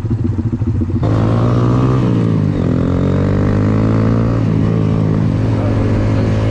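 A small motorcycle engine revs up and roars as it pulls away.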